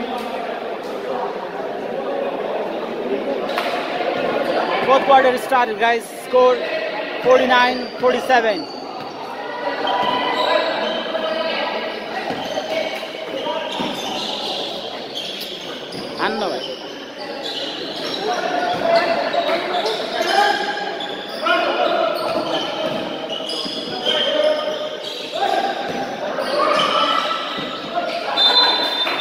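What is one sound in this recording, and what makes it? A crowd of young men shout and call out in an echoing hall.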